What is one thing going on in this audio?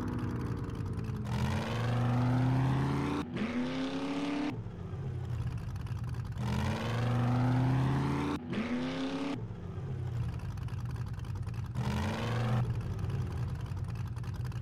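A car engine hums and revs up and down repeatedly.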